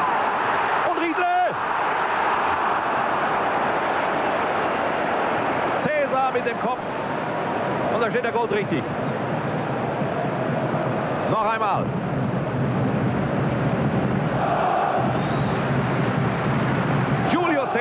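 A large stadium crowd roars and cheers steadily throughout.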